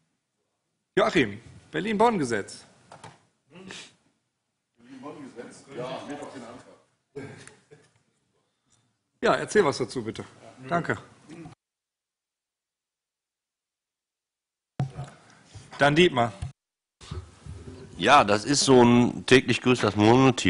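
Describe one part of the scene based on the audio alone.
Men speak calmly through table microphones, with pauses of silence between them.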